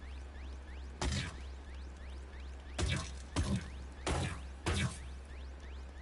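Energy blasts burst with loud crackling whooshes.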